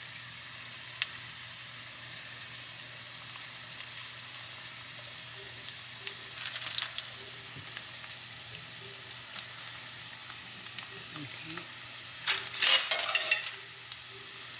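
Food rolls drop into hot oil with sudden hisses.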